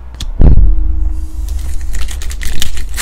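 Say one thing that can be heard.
A foil wrapper crinkles as hands pull it open.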